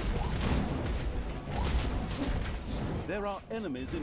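Video game battle effects clash and crackle.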